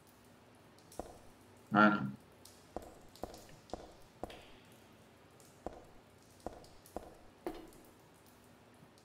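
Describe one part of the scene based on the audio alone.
Footsteps tap on a hard floor at a walking pace.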